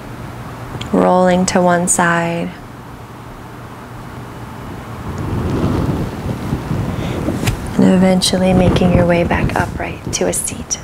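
A woman speaks calmly and close to a microphone.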